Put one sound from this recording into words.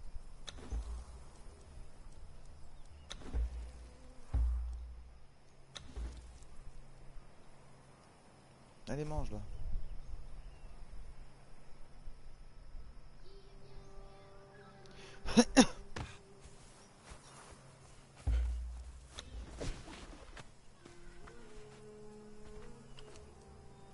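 Short interface clicks and swooshes sound as menus open and close.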